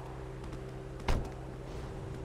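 A car door shuts.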